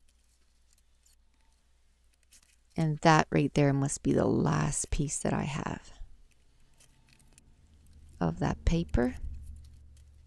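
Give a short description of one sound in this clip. A paper trimmer blade slides along and cuts through paper.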